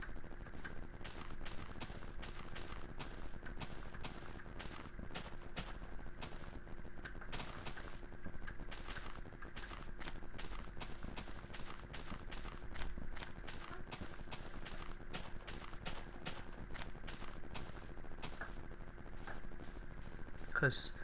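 Footsteps tread steadily over sand and grass.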